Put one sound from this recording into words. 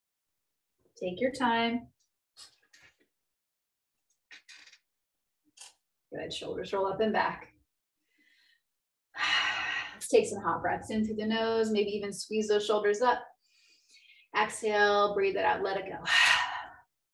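A woman speaks calmly and warmly, close to a microphone.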